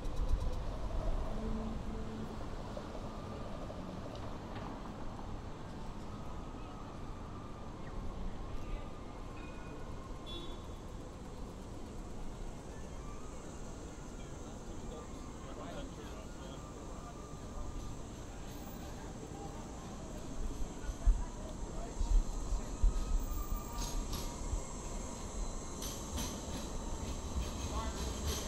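A low, steady city street rumble carries throughout, outdoors.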